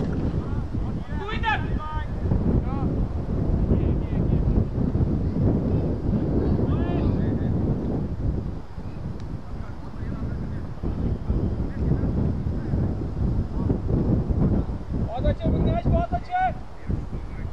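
Men call out to each other in the distance, outdoors.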